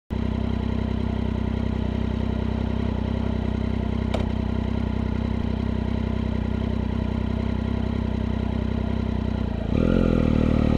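A motorcycle engine idles steadily.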